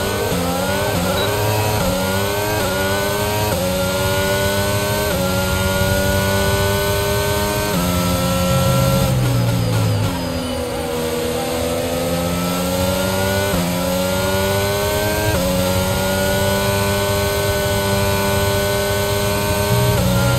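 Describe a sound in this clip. A racing car engine screams at high revs, rising through each gear and dropping sharply at each shift.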